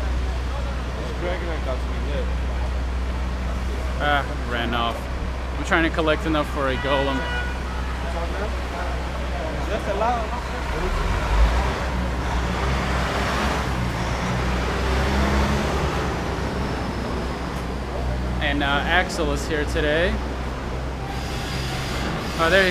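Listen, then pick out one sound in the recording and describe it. A young man talks close to a microphone, calmly.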